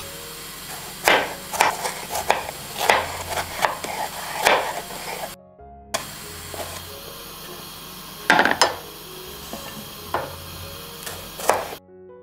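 A knife chops through tomatoes onto a wooden board.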